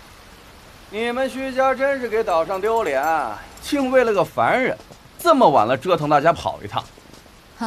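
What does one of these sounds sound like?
A young man speaks with scorn, close by.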